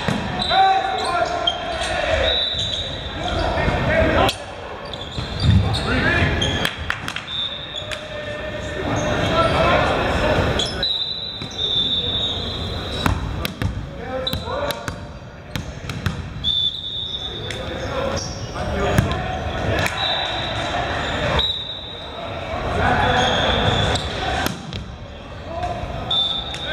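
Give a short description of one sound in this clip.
A volleyball is struck and bounces with sharp slaps.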